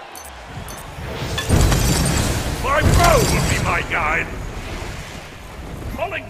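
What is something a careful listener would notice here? Heavy blasts and magical bursts boom and crash in a fight.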